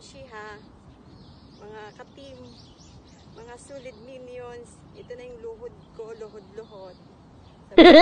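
A woman talks calmly close by, outdoors.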